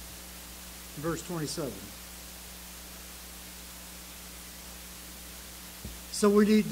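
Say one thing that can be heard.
An elderly man speaks slowly and solemnly into a microphone, with long pauses.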